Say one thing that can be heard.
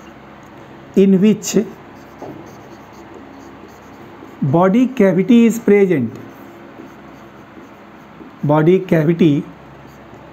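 A man speaks calmly and clearly nearby, in short phrases.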